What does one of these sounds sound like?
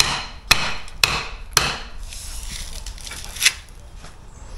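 A hammer knocks sharply against brick and mortar.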